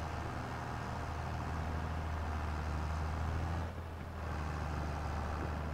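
A tractor engine rumbles steadily from inside the cab.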